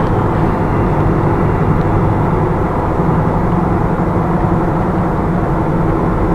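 Tyres roll steadily on the road surface.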